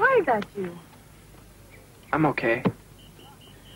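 A young woman speaks quietly and earnestly up close.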